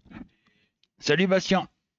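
A middle-aged man speaks close into a headset microphone.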